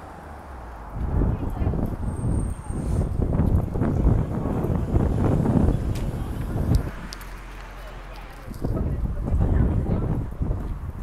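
Wind gusts roar loudly outdoors.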